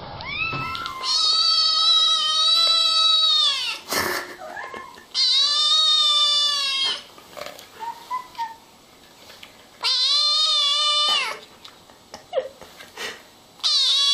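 A kitten meows loudly and repeatedly in long cries.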